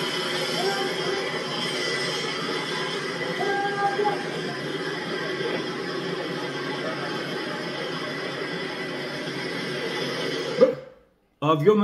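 A television broadcast plays with a busy murmur of voices.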